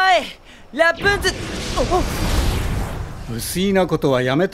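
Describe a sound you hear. A rushing whoosh swells and fades.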